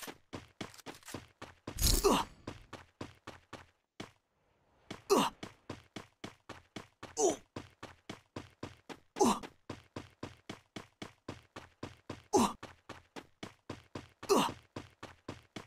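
Quick footsteps patter steadily on the ground.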